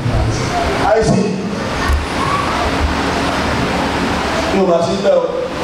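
A man speaks with animation into a microphone over loudspeakers in an echoing hall.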